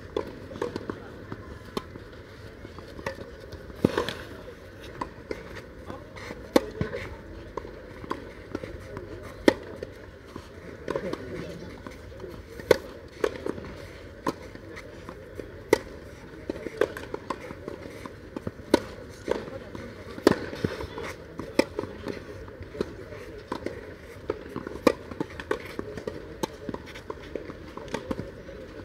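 A tennis ball bounces on a clay court.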